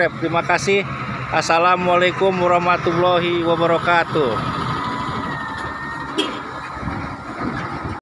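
A heavy truck engine rumbles as the truck rolls slowly past.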